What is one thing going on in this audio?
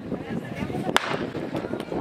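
A starting gun fires with a sharp crack outdoors.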